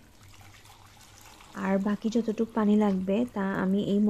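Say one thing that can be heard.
Water pours into a plastic cup.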